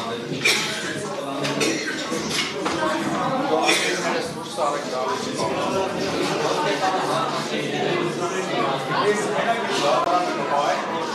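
A crowd of men and women talk over one another in an echoing room.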